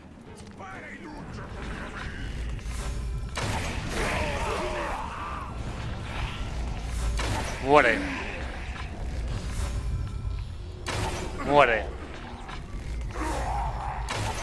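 A bowstring twangs as arrows are loosed, again and again.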